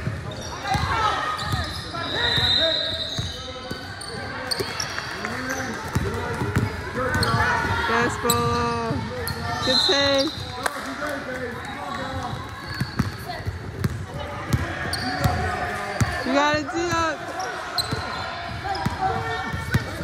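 A basketball bounces on the floor, echoing in a large hall.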